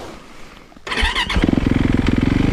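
A four-stroke single-cylinder dirt bike engine starts up.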